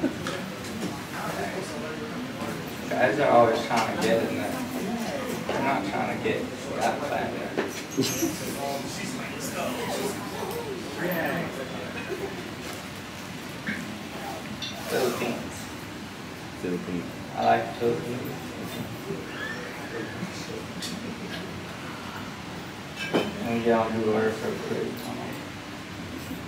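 A young man speaks through a microphone and loudspeakers, pausing now and then, in a room with some echo.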